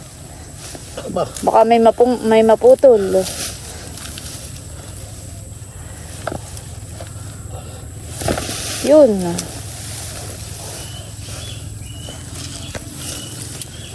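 Roots tear and soil crumbles as a plant is pulled from the ground.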